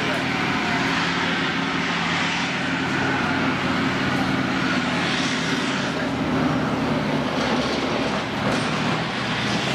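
Tank tracks clatter and squeal on dirt.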